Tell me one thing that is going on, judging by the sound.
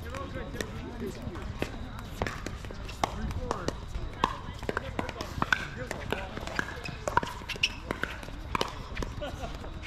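The popping of paddles echoes from nearby courts outdoors.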